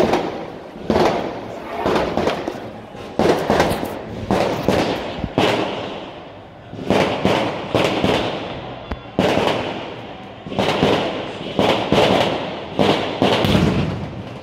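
Fireworks bang and crackle repeatedly nearby outdoors, echoing off buildings.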